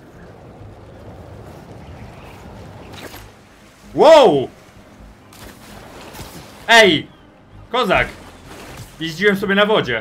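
Water splashes and rushes as a figure skims across it.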